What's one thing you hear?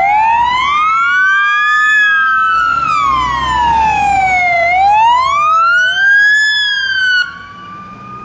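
A fire engine's siren wails, rising and falling quickly as it passes by.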